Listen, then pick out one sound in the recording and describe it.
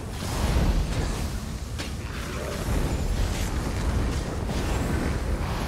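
Magic blasts crackle and burst in a fight.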